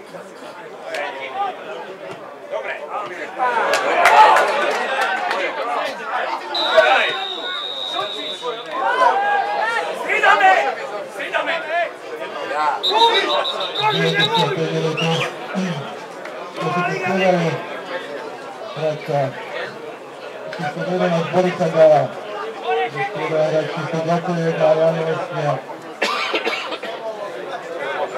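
Spectators chatter and call out close by, outdoors.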